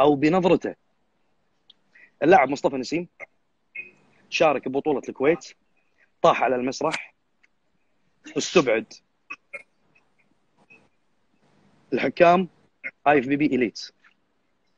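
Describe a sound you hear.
A man speaks with animation over an online call, in bursts with pauses.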